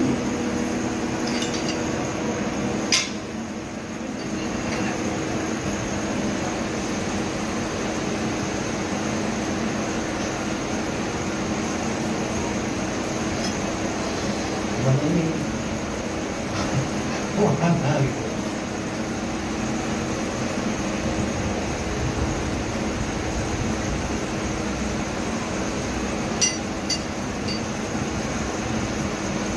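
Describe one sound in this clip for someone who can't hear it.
A machine hums steadily close by.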